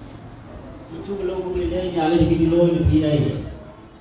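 A man speaks loudly into a handheld microphone.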